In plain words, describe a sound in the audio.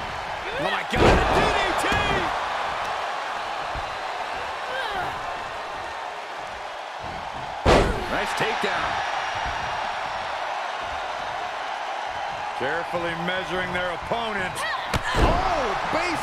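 Bodies slam heavily onto a wrestling ring mat.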